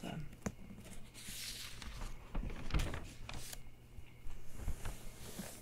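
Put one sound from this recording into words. Hands rub and tap softly on paper pages.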